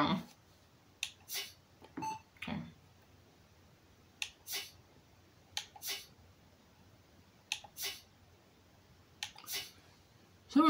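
Short electronic menu sounds blip and swish as pages change.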